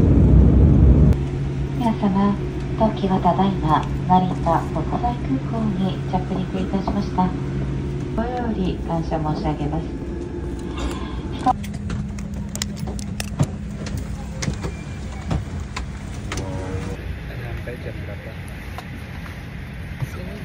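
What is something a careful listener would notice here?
A steady low roar of aircraft engines fills the cabin.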